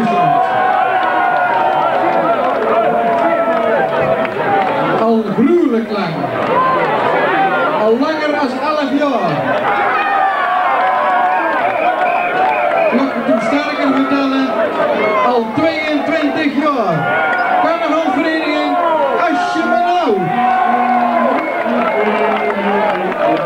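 A brass band plays a lively tune in a crowded hall.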